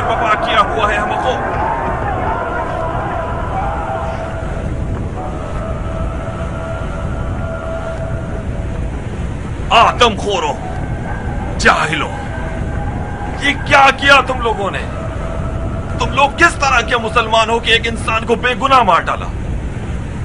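A man shouts angrily and forcefully, close by.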